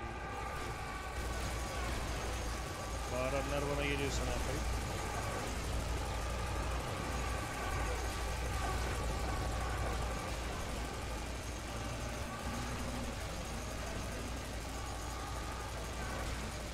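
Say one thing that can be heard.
A heavy machine gun fires in rapid, rattling bursts.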